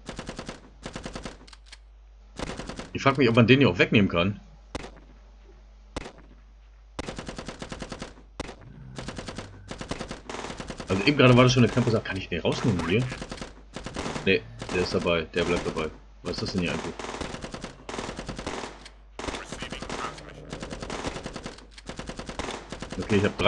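Automatic guns fire in rapid bursts.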